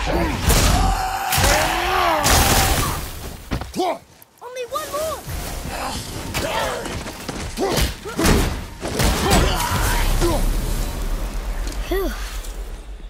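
Heavy blows land with loud crashes and thuds.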